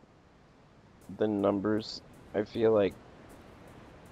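Waves wash gently against a shore.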